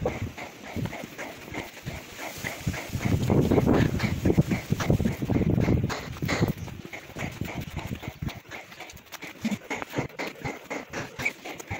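Footsteps crunch on rough cobblestones.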